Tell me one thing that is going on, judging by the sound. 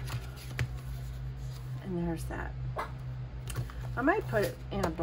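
Hands rub and smooth a plastic sheet with soft rustling.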